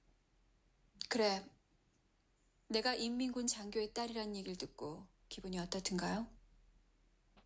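A young woman speaks quietly and calmly nearby.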